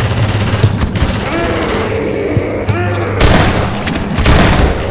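A monster snarls and groans close by.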